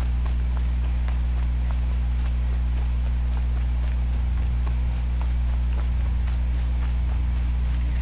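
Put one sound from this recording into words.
Quick footsteps run over dirt and grass.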